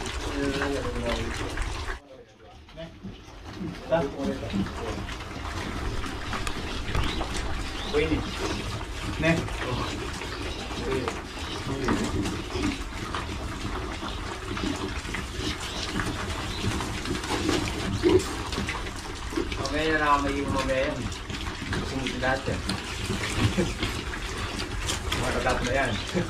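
Pigs grunt and snuffle close by.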